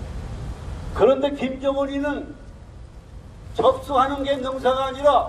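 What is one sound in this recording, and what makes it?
An elderly man speaks loudly into a microphone, heard through loudspeakers outdoors.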